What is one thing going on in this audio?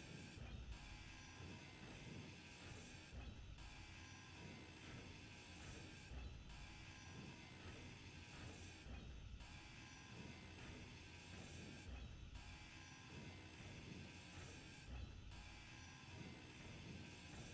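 A grinder whines steadily as it cuts metal, pausing briefly every few seconds.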